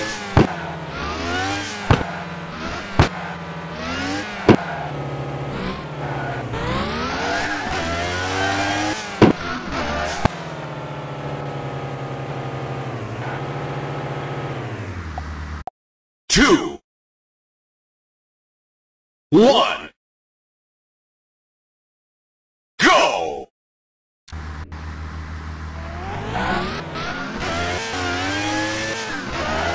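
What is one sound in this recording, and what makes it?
A racing car engine revs and whines, rising and falling in pitch.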